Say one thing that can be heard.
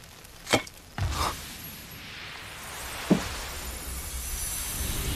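A soft magical whoosh swells as a wisp of light rises.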